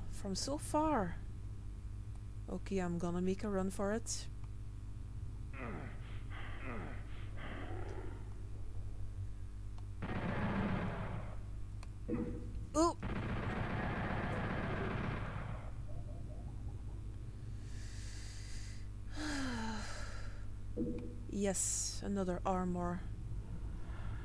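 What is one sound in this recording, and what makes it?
A young woman talks casually into a headset microphone.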